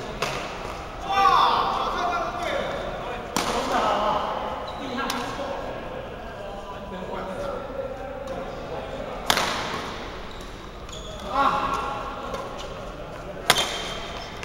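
Young players call out and laugh.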